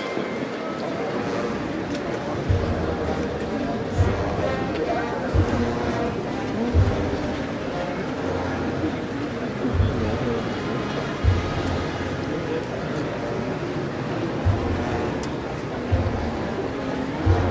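A large crowd murmurs outdoors.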